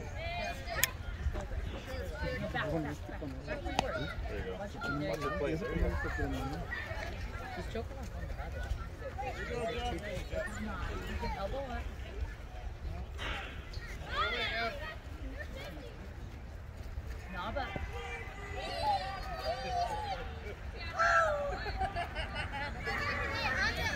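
Children and adults talk and call out nearby outdoors.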